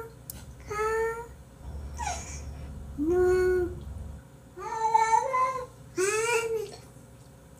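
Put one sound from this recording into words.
A cat meows loudly and repeatedly, close by.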